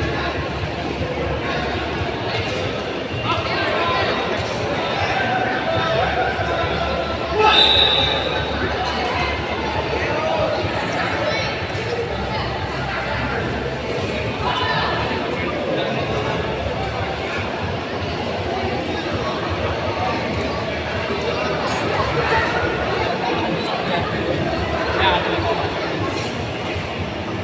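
A large crowd chatters and cheers in an open, echoing hall.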